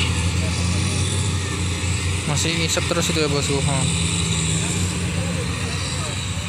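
Truck engines rumble steadily as vehicles drive slowly along a dirt road.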